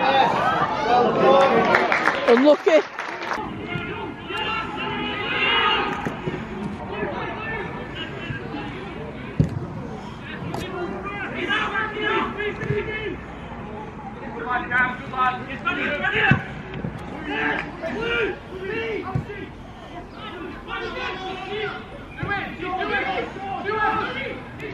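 Football players shout to each other across an open pitch.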